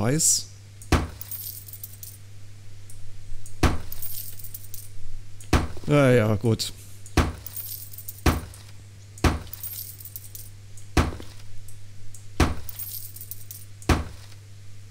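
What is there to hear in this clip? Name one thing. A hammer knocks against a wall at a slow, uneven pace.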